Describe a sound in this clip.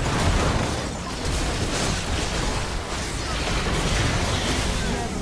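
Spell effects crackle and burst in a video game.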